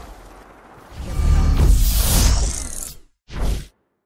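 A loud rushing whoosh swells and then cuts off.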